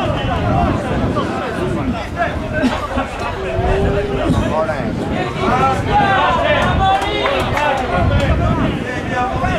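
Several men argue loudly and with animation outdoors.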